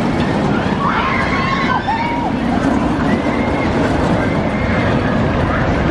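Riders scream as a roller coaster races past.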